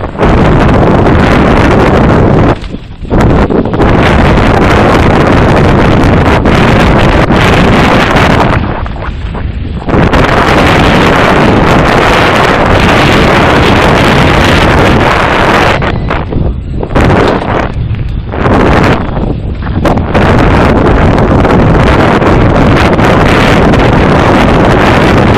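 Wind roars loudly past a fast-moving bike.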